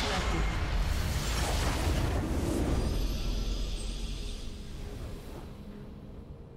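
A loud burst of game explosions and magic effects crashes and roars, then fades.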